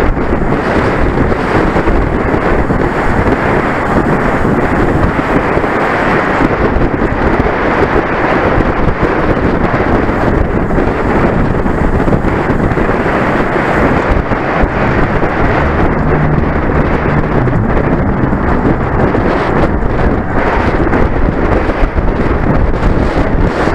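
Strong wind rushes and buffets loudly past the microphone.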